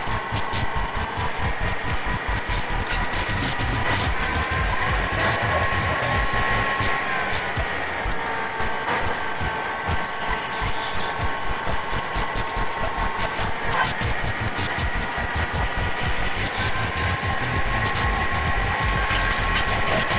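Upbeat game music plays steadily.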